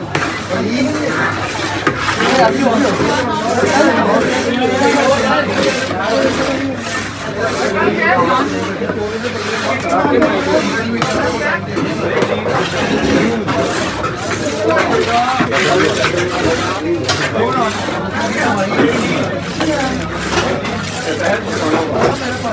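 A metal ladle scrapes and stirs through a large metal pot.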